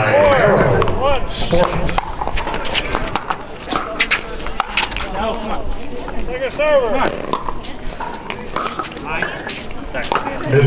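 Paddles hit a plastic ball with sharp pops, back and forth.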